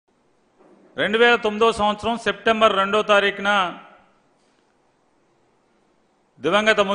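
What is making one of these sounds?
A man speaks calmly into a microphone nearby.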